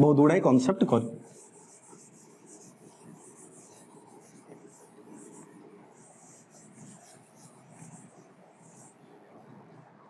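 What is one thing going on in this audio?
A duster rubs softly across a whiteboard.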